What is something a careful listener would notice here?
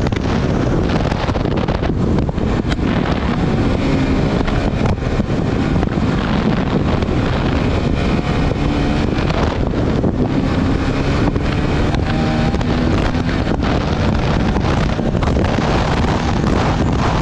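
Tyres rumble and crunch over a sandy dirt track.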